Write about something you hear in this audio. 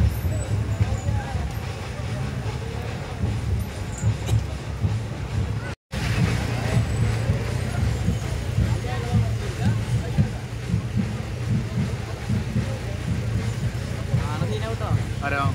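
A crowd of men chatter and talk nearby outdoors.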